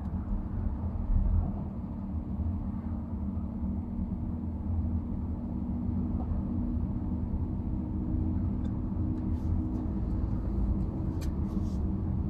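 Tyres roll on a road.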